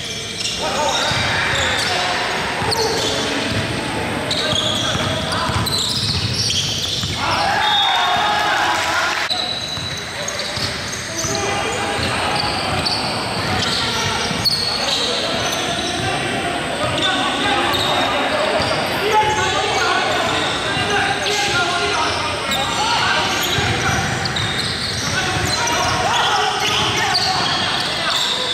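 Young men shout and call out to each other.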